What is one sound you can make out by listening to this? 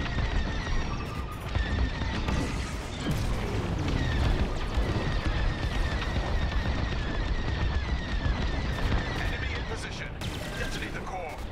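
A spaceship engine roars with a deep, steady rumble.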